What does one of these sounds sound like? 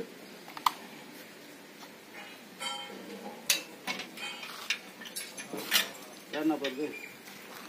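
Metal parts clink and knock as a man handles them.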